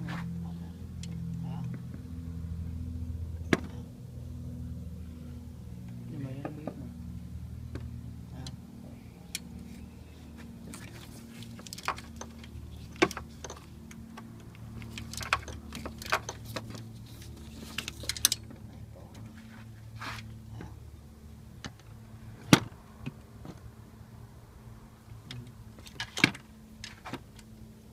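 A socket wrench clicks and clanks against a metal bolt.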